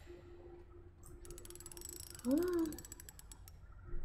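A metal dial clicks as it turns.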